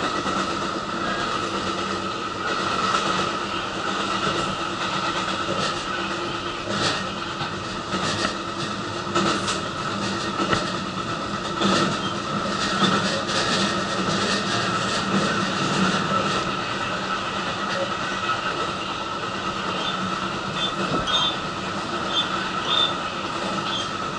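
Hanging hand straps rattle and clink as the train sways.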